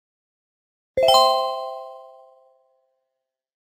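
A shimmering chime rings out and slowly fades.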